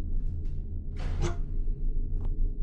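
A wooden door swings open with a creak.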